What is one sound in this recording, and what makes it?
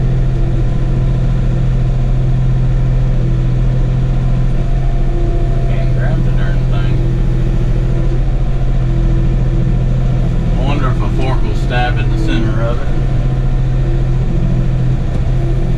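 A diesel compact tractor engine runs with a steady hum, heard from inside the cab.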